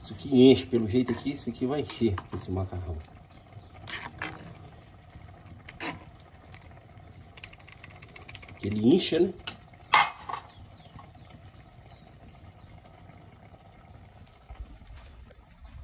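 Water bubbles at a simmer in a pot.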